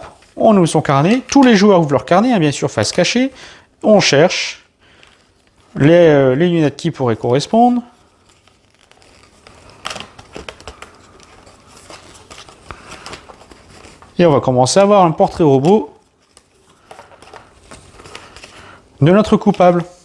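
Stiff pages of a booklet are flipped and rustle.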